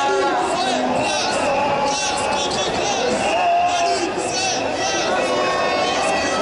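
A crowd of marchers talks and chants loudly outdoors.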